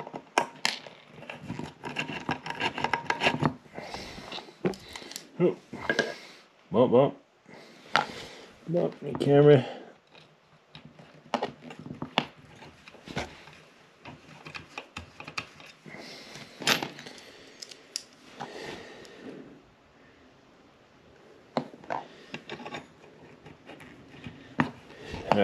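A screwdriver clicks and scrapes against a metal bracket.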